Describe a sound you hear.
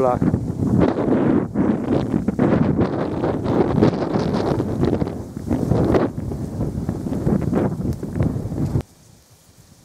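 Slushy ice floes hiss and grind as they drift down a fast river.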